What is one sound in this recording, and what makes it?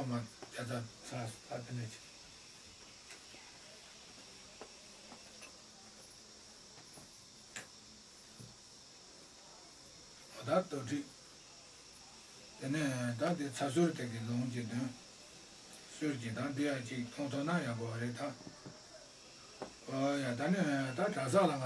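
An elderly man speaks calmly and slowly nearby, with long pauses.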